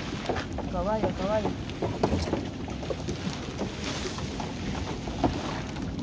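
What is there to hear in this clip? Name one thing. Water splashes off a wet fishing net as it is hauled in.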